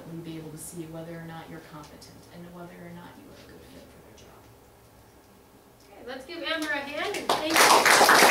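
A young woman speaks to a room in a calm, clear voice.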